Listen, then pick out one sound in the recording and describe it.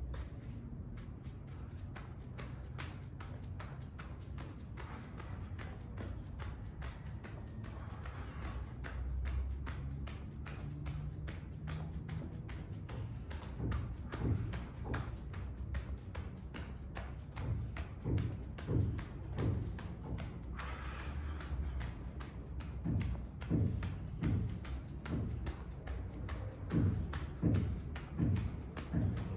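Bare feet land with soft thumps on a hard floor.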